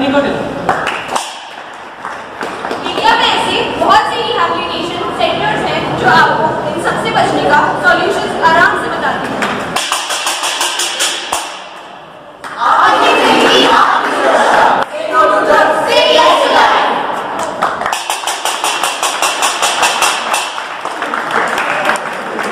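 Young people sing together loudly in a large echoing hall.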